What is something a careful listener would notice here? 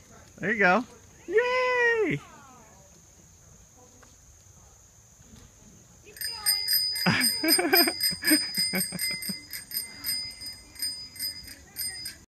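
Small bicycle wheels roll and rattle over pavement.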